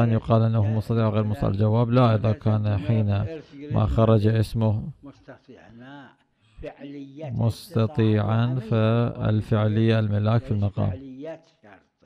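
A man chants a recitation in a melodic voice through a microphone.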